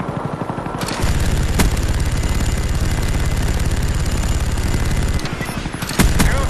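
A heavy machine gun fires in a long, rattling burst.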